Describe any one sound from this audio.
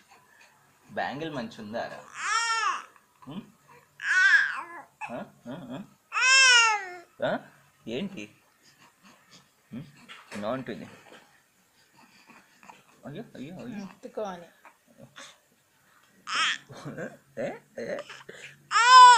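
A baby coos and squeals loudly close by.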